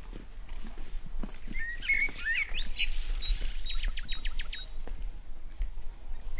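Footsteps thud on stone steps outdoors.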